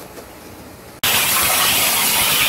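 A high-pressure waterjet blasts with a loud hiss.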